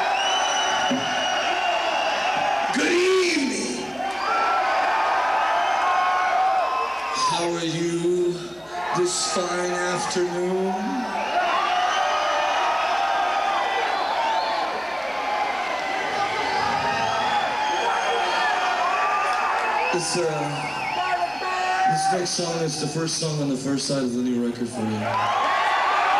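A bass guitar plays loud, distorted rock through amplifiers.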